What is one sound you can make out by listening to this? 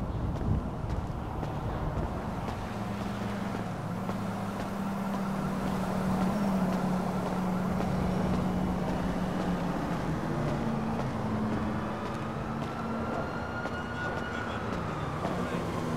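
Car engines hum and whoosh as traffic passes nearby, with a low echo.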